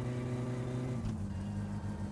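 A car engine drops in pitch as the gear shifts.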